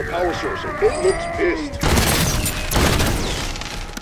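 A rifle fires a few loud shots.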